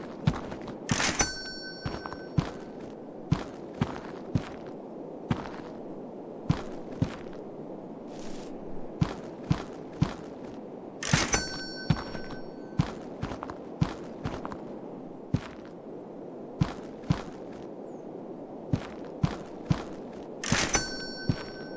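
A cardboard box thuds into a metal bin.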